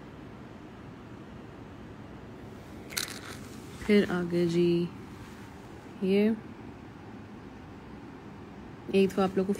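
Beaded jewelry clinks softly as a hand handles it.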